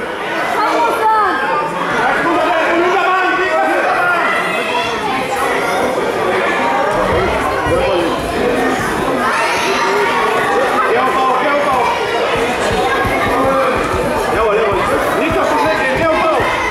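Bodies thud and scuffle on a wrestling mat.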